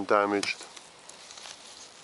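Leaves rustle as a hand brushes them close by.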